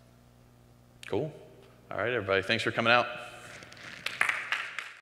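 A man speaks into a microphone, with long pauses.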